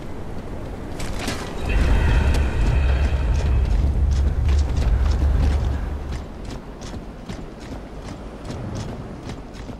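Heavy boots clank on a hard floor.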